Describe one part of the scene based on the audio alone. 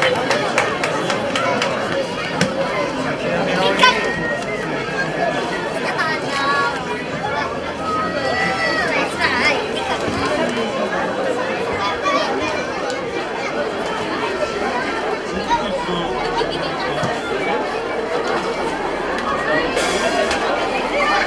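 A large crowd of men and women chatters loudly outdoors.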